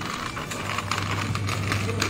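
A plastic shopping basket rattles.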